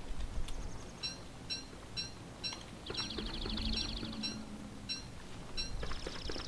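Footsteps patter softly on grass.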